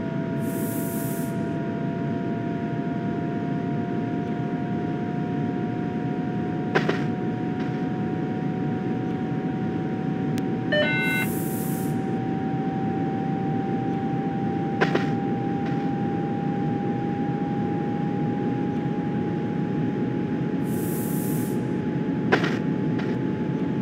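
A train's electric motor hums steadily, its pitch rising slowly.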